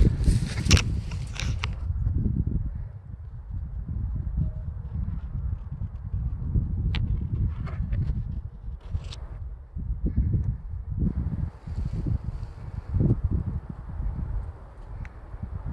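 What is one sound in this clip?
Wind buffets the microphone outdoors with a low, steady rumble.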